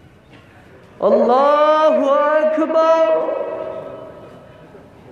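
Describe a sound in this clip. A man chants loudly through a loudspeaker outdoors.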